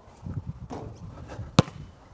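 A basketball clangs off a hoop's rim and backboard.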